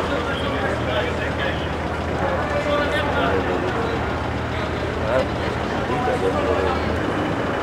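A crowd of men and women chatter outdoors.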